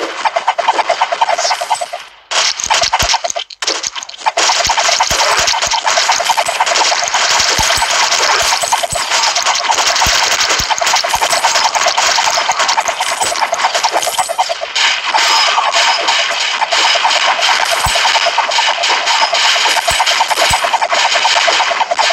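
Game sound effects of rapid shots and hits play continuously.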